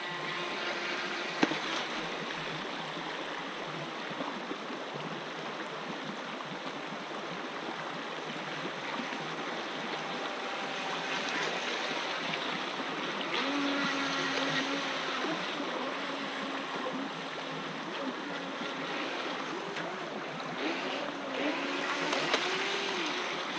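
Small toy boat motors whine as they speed through the water.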